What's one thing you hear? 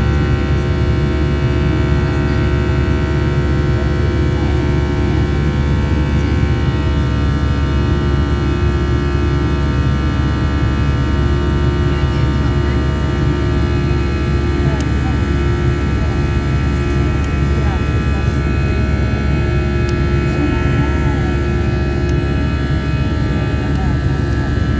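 Aircraft engines drone steadily with a loud, low rumble and a constant whine.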